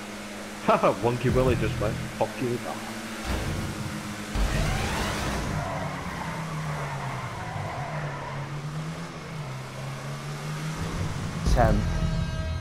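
A racing car engine drones steadily, its pitch rising and falling.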